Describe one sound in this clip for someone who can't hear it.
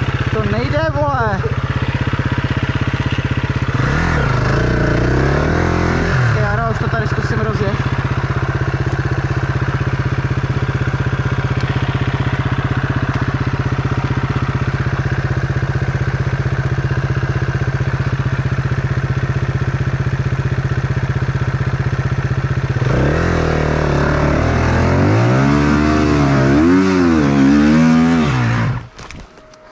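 A dirt bike engine revs up loudly in bursts.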